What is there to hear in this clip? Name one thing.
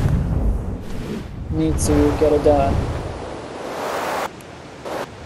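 Wings flap with a whooshing rush of wind.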